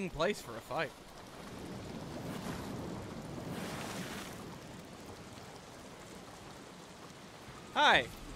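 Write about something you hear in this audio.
Wind gusts across open ground.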